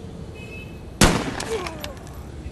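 A rifle fires a single loud shot that echoes briefly.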